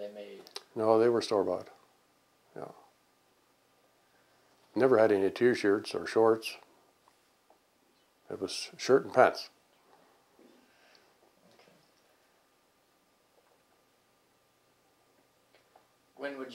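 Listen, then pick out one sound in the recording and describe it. An elderly man speaks calmly and thoughtfully into a close microphone, pausing between phrases.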